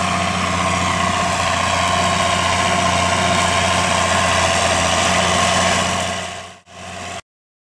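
A tractor engine drones steadily close by, then fades away.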